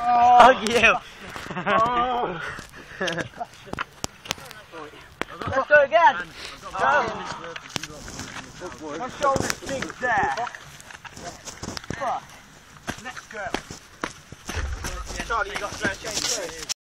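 Young men talk and shout with animation outdoors.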